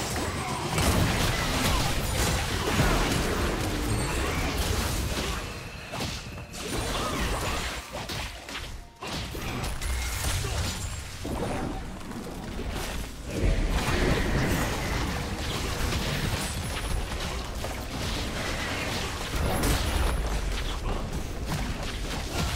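Game spells and attacks crackle and boom in a busy fight.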